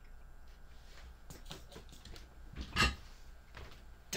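A chair creaks and shifts as a man gets up.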